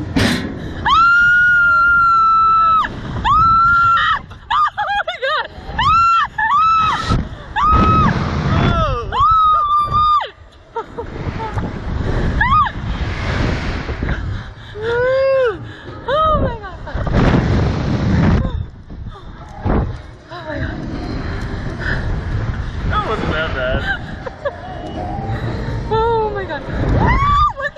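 A young man laughs loudly, close by.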